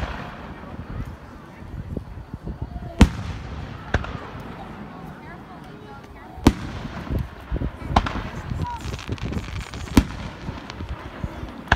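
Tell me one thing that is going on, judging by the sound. Fireworks crackle and fizz after the bursts.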